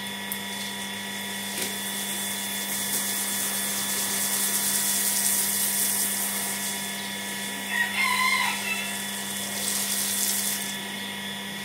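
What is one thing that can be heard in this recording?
Water sprays from a hose and splashes onto a mat and stone floor.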